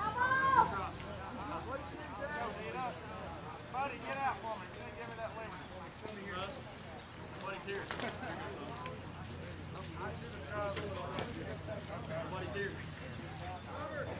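Several adults, men and women, talk and call out outdoors.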